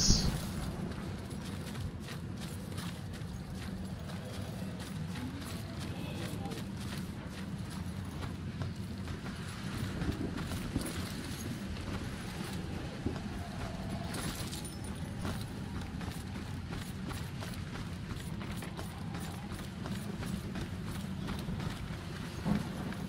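Footsteps tread quickly on leaves and stone paths.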